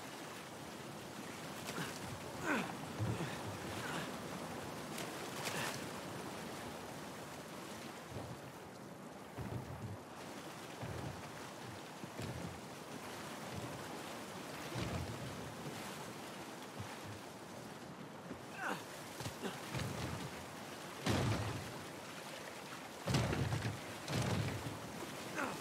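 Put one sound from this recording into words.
Footsteps thud on wood and stone.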